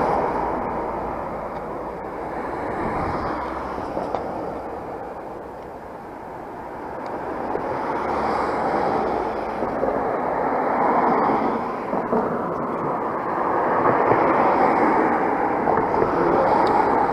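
Wind rushes and buffets against the microphone outdoors.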